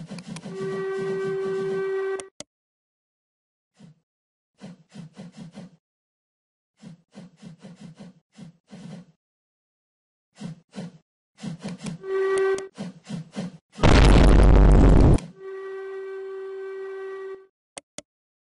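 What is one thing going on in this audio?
A steam locomotive whistle blows in long, steady blasts.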